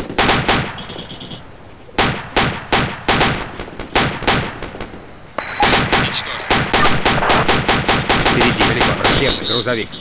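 A rocket launcher fires with a loud blast.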